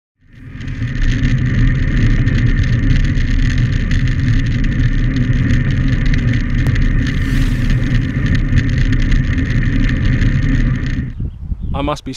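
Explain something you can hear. Wind rushes loudly past a fast-moving bicycle.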